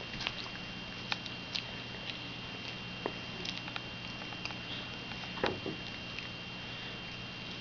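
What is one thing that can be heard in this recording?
A small boy talks softly close by.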